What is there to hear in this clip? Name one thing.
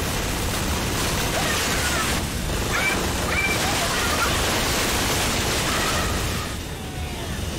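Robots burst apart into scattering debris.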